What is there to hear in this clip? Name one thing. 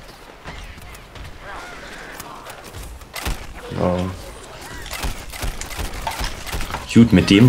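A cartoon blaster fires rapid shots.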